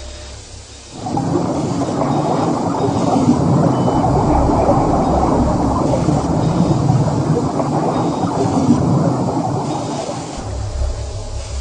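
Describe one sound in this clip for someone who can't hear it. Liquid drains with a rushing gurgle.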